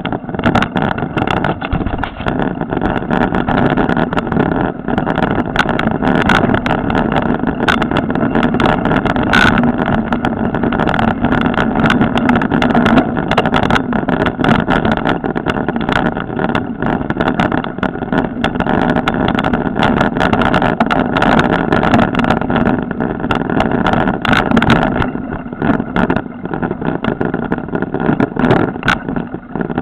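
A bicycle rattles and bumps steadily along a rough dirt trail.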